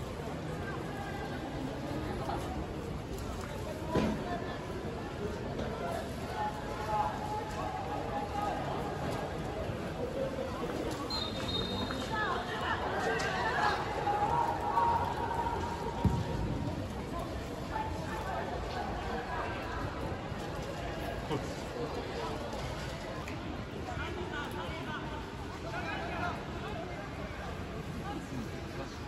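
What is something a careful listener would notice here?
Players shout and call out across an open field.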